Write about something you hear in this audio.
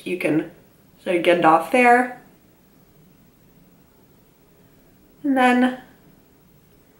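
A young woman speaks calmly and close to a microphone, in short bursts.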